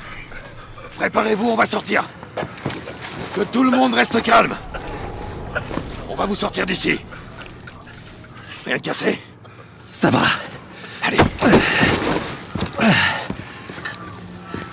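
A man shouts urgently nearby.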